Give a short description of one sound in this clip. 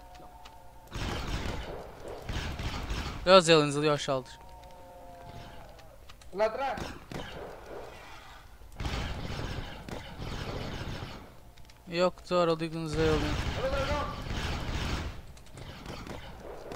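A laser rifle fires in rapid bursts.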